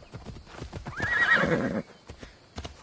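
A horse whinnies loudly.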